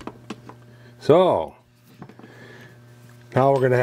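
A small metal mechanism clicks and ticks as it turns.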